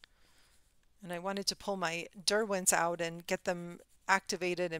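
A woman speaks calmly and closely into a microphone.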